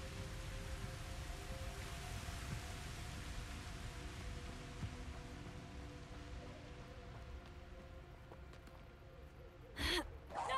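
Wind blows steadily outdoors and slowly dies down.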